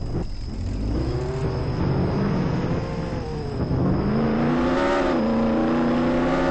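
A sports car engine revs and roars, rising and falling in pitch.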